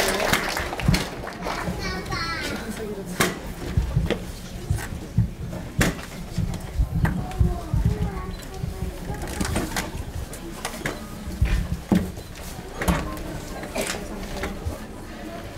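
A woman talks into a microphone, heard through loudspeakers in a large echoing hall.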